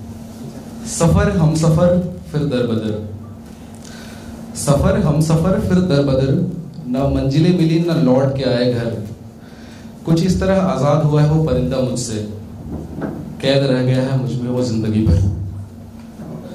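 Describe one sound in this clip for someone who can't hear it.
A young man recites with feeling into a microphone, heard through loudspeakers in a large room.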